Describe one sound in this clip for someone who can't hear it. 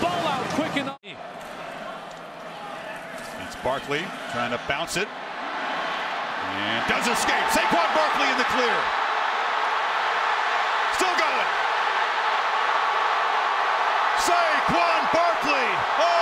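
A large stadium crowd roars and cheers, swelling louder.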